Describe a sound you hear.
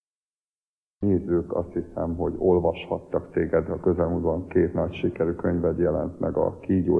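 A man speaks calmly and close by, heard through a microphone.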